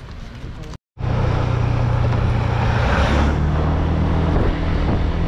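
A pickup truck's engine rumbles close by.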